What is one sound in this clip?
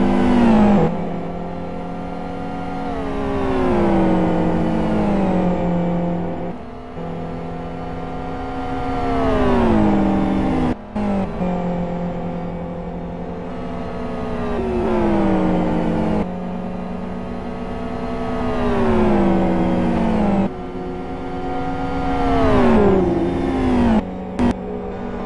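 Racing car engines roar and rise and fall in pitch as they pass by.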